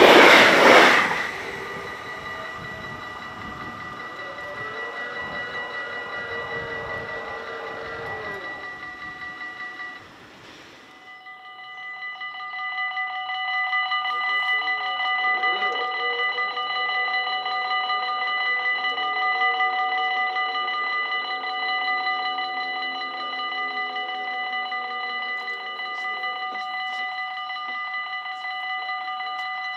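A level crossing bell rings steadily and rapidly.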